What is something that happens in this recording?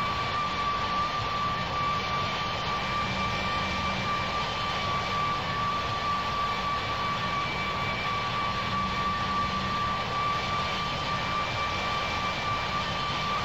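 Jet engines drone steadily with a high whine.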